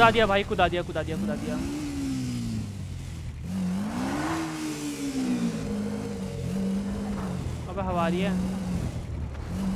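A motorcycle engine idles and revs up and down.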